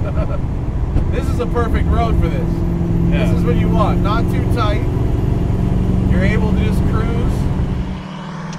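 A man talks with animation inside the car.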